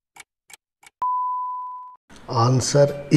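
A single electronic beep sounds.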